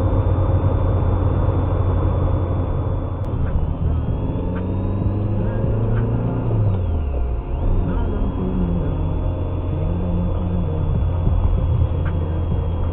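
A car engine hums low and steady from inside the car as it drives.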